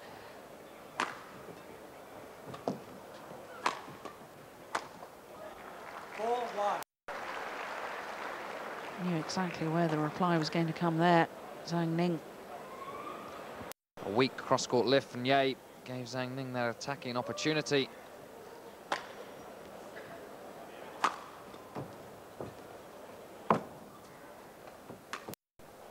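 A racket smacks a shuttlecock back and forth in a large hall.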